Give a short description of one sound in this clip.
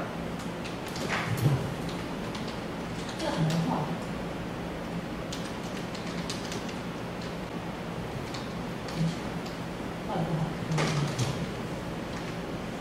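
A marker taps and squeaks on a whiteboard.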